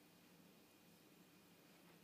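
A hand softly strokes a cat's fur.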